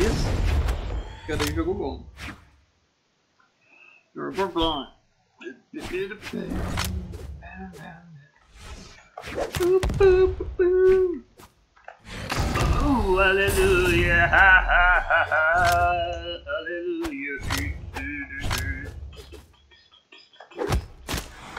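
Sharp punches and impacts sound as game fighters clash.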